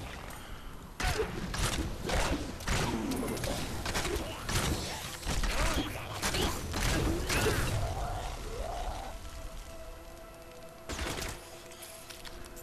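Magic blasts and blows clash in a video game battle.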